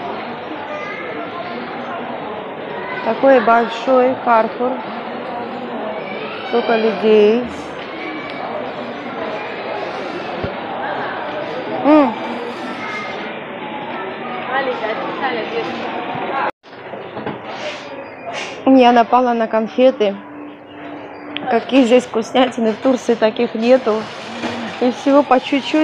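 A crowd of shoppers murmurs steadily throughout.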